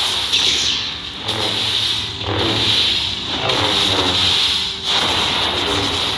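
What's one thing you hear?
Energy blasts crackle and burst.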